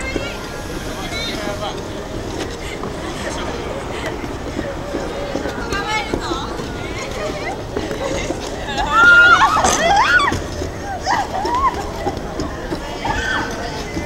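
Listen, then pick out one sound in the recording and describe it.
A crowd of people chatters and calls out outdoors.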